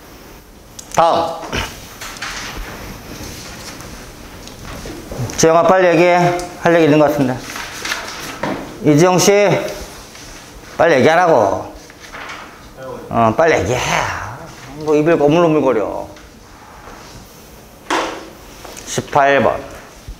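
A man speaks calmly through a small clip-on microphone in an echoing room.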